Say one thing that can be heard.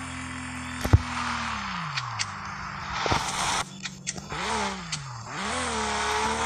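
A sports car engine revs up and down.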